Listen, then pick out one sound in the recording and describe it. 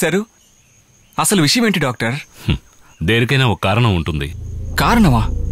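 An older man talks in reply, close by.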